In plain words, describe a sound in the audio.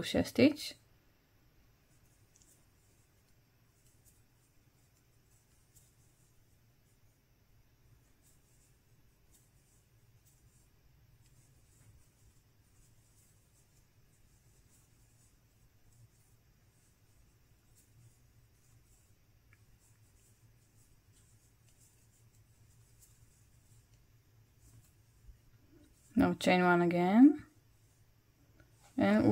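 Yarn rustles softly as a crochet hook works through it.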